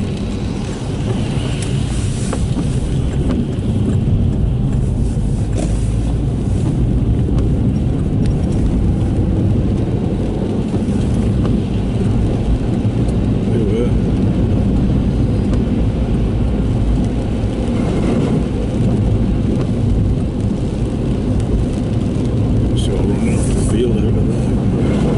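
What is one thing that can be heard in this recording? Rain patters on the windscreen.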